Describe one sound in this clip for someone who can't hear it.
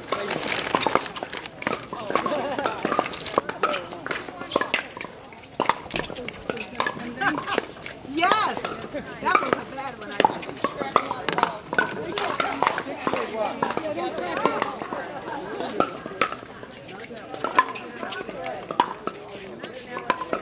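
Paddles pop sharply against a plastic ball, over and over.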